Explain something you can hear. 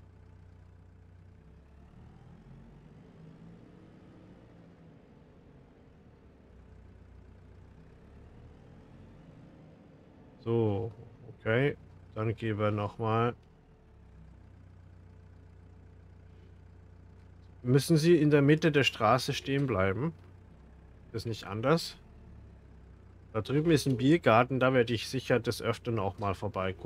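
A tractor engine hums steadily at low revs.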